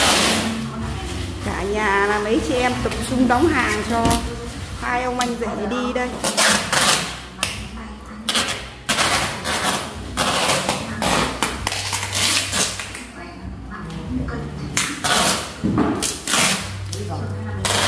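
Packing tape screeches as it is pulled off a roll.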